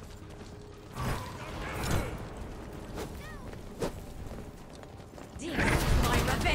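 Weapons clash and strike in a fantasy battle with sharp, ringing impacts.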